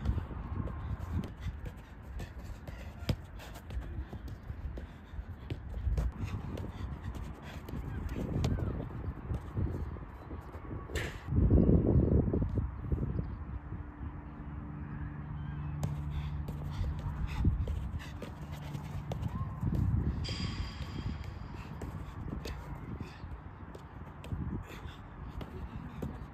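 A football is tapped repeatedly with quick, light touches of the feet.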